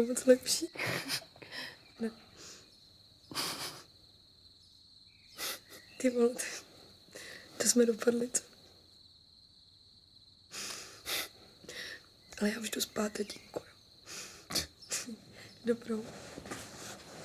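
A young woman speaks softly and playfully, close by.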